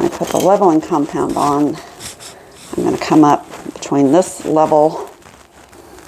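A trowel scrapes wet mortar.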